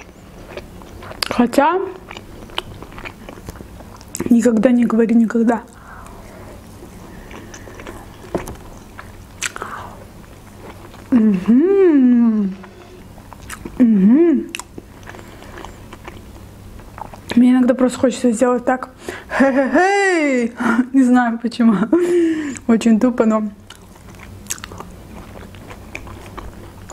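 A young woman chews food with soft, wet mouth sounds.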